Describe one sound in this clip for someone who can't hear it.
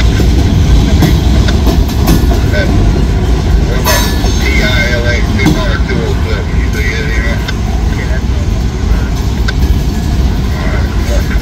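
A freight train rumbles past at close range with a steady low roar.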